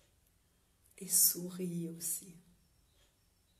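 A woman speaks warmly and close to the microphone.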